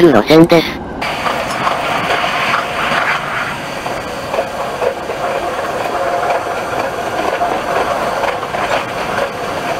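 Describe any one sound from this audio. A train rumbles along the rails.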